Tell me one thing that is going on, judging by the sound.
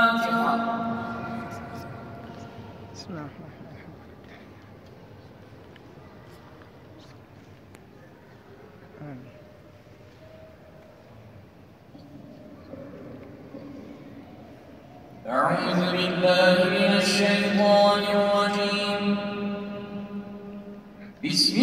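A man chants prayers through loudspeakers in a large echoing hall.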